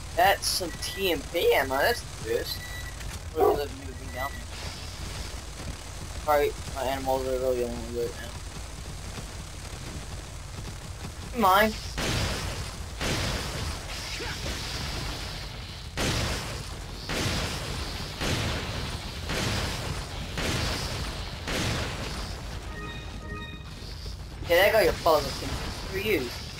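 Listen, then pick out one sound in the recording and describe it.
A young woman talks excitedly close to a microphone.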